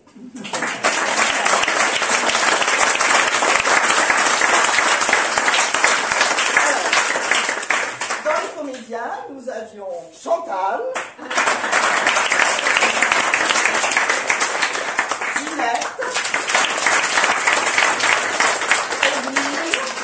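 A crowd claps loudly and steadily.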